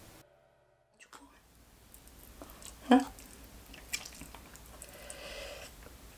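A young woman slurps and chews noodles close to the microphone.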